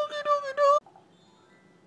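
A small dog yelps loudly up close.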